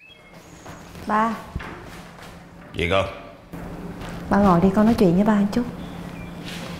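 A woman speaks in an agitated voice.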